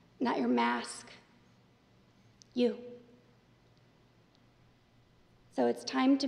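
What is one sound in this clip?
A young woman reads aloud calmly through a microphone, with pauses.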